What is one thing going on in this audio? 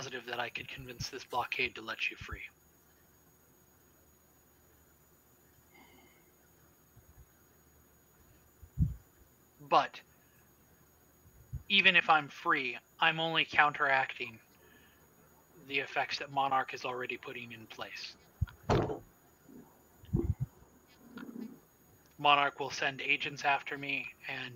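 A woman talks over an online call.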